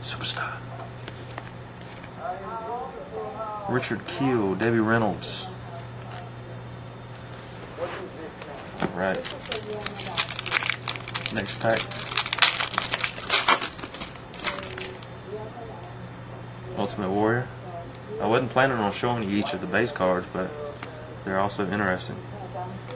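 Trading cards rustle and flick as they are flipped through in hands.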